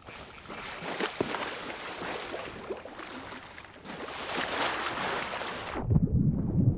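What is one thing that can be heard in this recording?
Waves wash gently against a shore.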